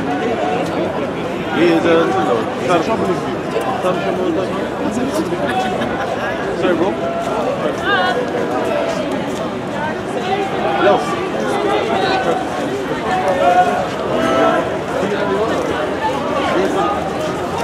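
A group of men and women sing together outdoors.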